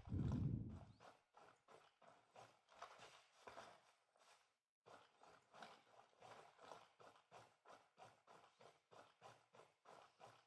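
Footsteps thud quickly over grass as a soldier runs.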